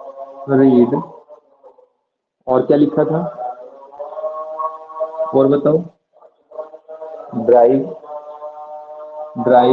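A man speaks in a lecturing tone.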